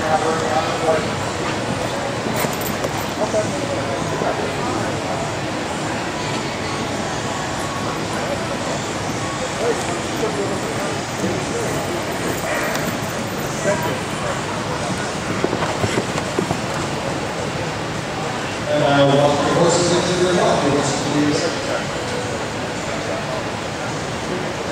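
A horse's hooves thud softly on a dirt arena.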